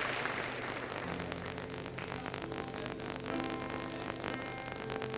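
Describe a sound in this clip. A piano plays soft notes.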